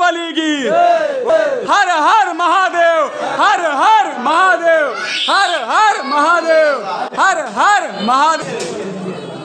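A crowd of men and women chants loudly together in an echoing room.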